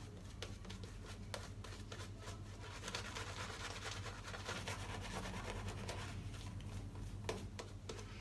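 A cloth rubs and wipes against skin close by.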